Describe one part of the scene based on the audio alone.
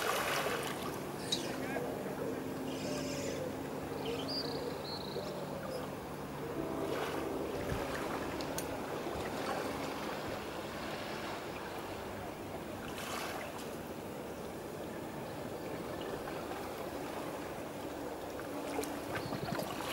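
Small waves lap softly at the water's edge outdoors.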